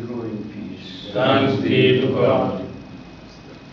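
An elderly man speaks aloud in a room.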